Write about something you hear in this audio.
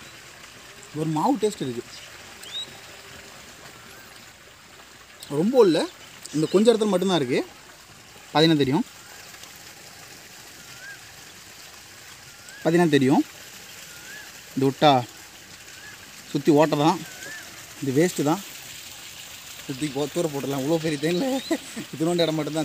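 A young man talks close by in short bursts, calmly explaining.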